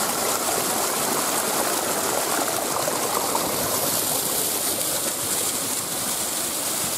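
Water rushes and splashes over rocks close by.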